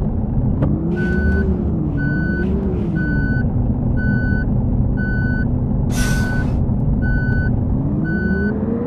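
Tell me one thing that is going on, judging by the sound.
A turn signal beeps in an even rhythm.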